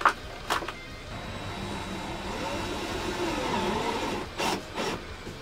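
A cordless drill whirs.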